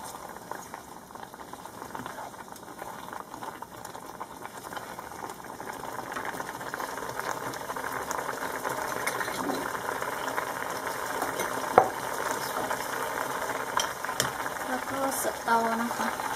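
A thick sauce bubbles and simmers in a pot.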